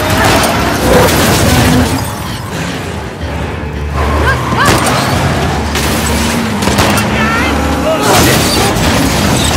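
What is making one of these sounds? A car engine roars as the car speeds off.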